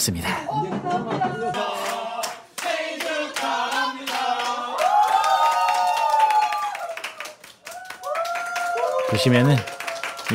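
A group of young men and women sing together cheerfully.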